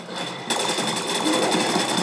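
Rapid gunfire rattles from a rifle.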